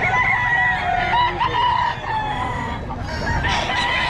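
Two roosters flap their wings as they spar.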